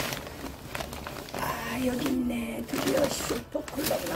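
A paper packet crinkles.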